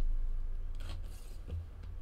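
A knife slices through packing tape.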